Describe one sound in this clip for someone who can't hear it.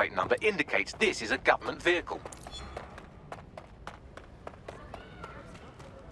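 Footsteps run quickly on hard pavement.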